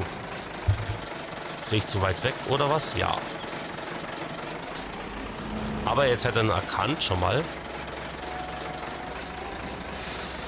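A truck engine rumbles low as the truck drives slowly.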